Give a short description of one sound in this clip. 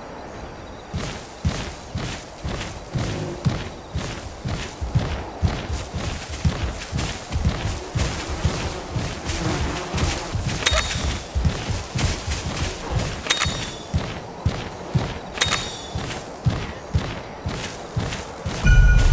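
A large creature's feet pound quickly over grass and rock.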